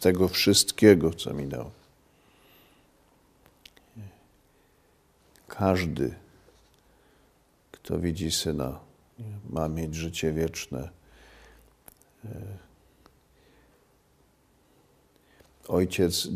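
A middle-aged man speaks slowly and solemnly into a close microphone, with long pauses.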